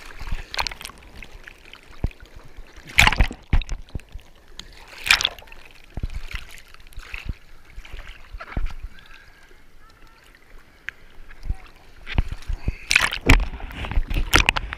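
Water bubbles and gurgles as a surfboard dips under the surface.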